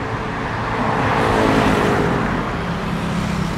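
A van passes close by on the road.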